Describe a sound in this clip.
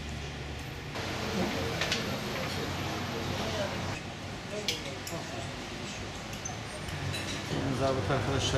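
People chatter around tables.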